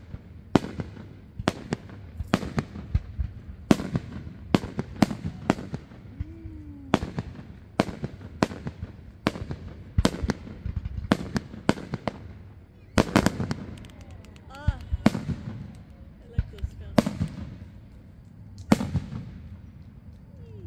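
Burning fireworks crackle and fizzle.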